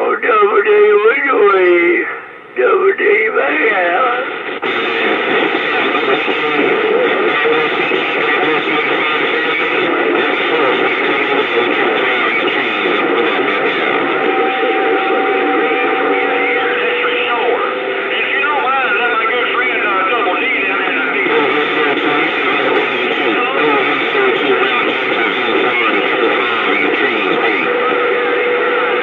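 Garbled, distant voices break through over a radio loudspeaker.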